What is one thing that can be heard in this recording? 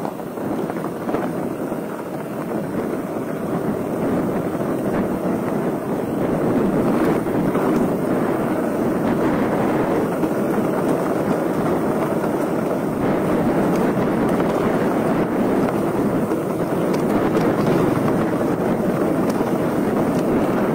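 Wind rushes steadily past a moving bicycle rider.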